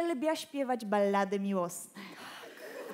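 A woman sings out through a microphone.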